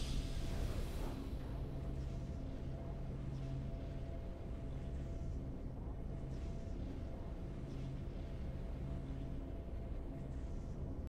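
Triumphant music plays softly and steadily.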